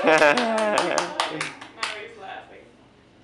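A woman laughs playfully close by.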